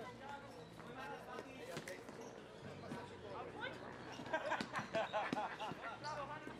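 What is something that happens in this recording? Young men shout to each other outdoors during a game.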